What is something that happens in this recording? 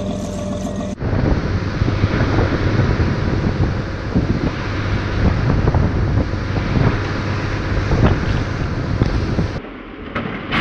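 Waves splash and churn on rough open water.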